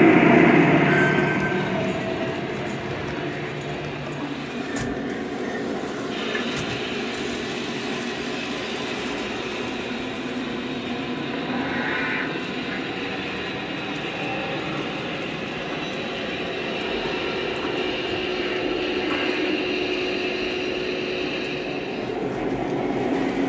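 A model train rumbles and clatters along its tracks.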